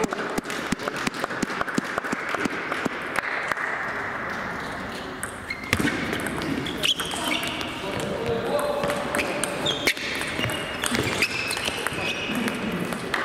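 A table tennis ball clicks quickly back and forth off paddles and the table in a large echoing hall.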